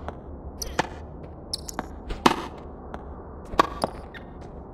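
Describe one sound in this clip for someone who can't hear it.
A tennis ball is struck with sharp pops.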